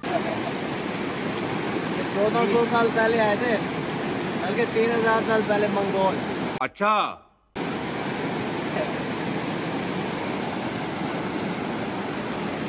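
A river rushes loudly over rocks nearby.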